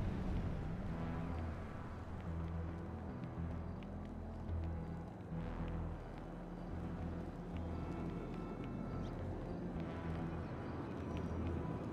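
Footsteps run quickly over pavement.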